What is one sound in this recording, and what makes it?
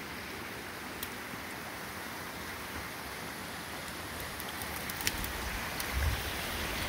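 Dry twigs snap and crackle underfoot.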